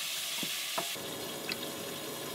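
Milk pours and splashes into a bowl.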